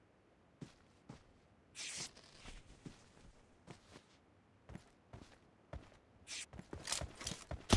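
Footsteps crunch across grass.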